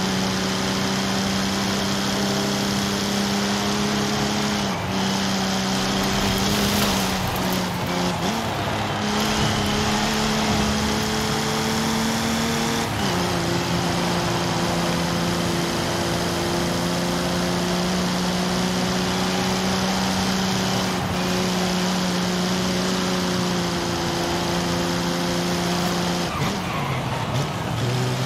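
A sports car engine drones steadily at high speed, shifting gears now and then.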